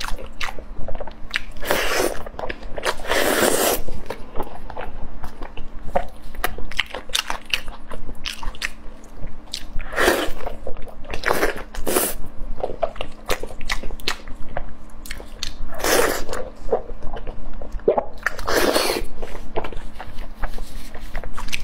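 A young woman chews and slurps close to a microphone.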